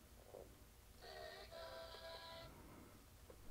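A handheld game console plays a short electronic startup chime.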